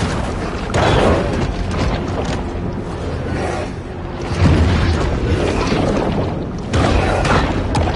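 A shark bites and thrashes at its prey with crunching splashes.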